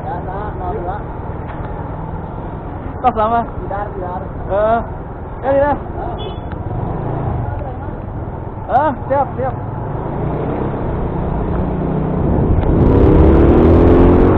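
A motorcycle engine hums close by and revs higher near the end.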